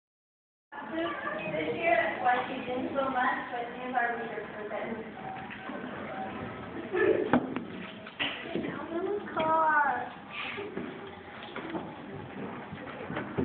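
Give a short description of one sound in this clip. A woman speaks to the children.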